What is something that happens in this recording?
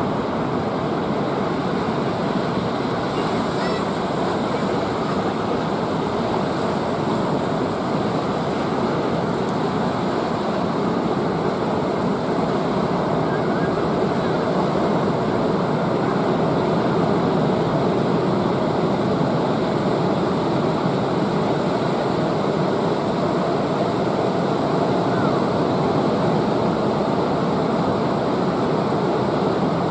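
Waves crash and roar steadily on the shore outdoors.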